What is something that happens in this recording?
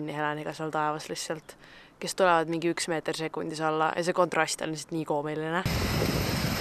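A young woman speaks close to the microphone, calmly and earnestly.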